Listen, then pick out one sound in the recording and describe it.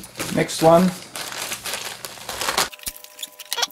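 A plastic bag crinkles as it is torn open.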